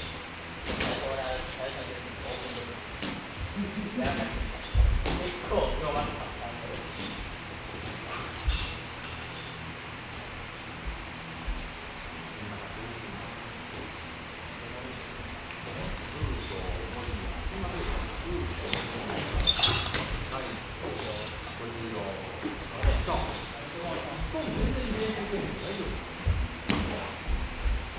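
Padded punches thud against a trainer's mitts in an echoing hall.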